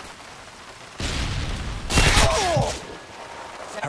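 Gunfire rings out in a loud burst.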